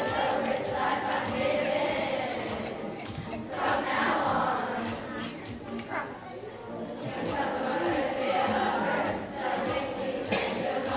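A children's choir sings together in a large echoing hall.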